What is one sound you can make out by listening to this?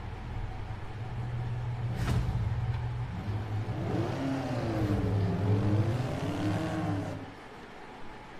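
A small car engine idles with a low steady hum.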